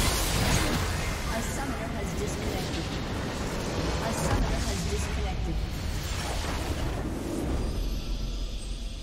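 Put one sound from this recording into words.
Game battle effects crash and blast loudly.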